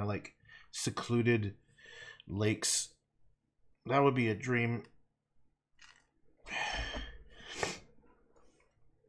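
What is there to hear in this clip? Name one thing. A man talks calmly and close to a microphone.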